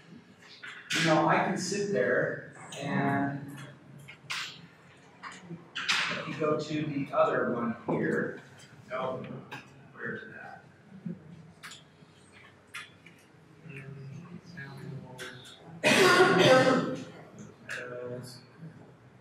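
A man speaks calmly, heard from across a room.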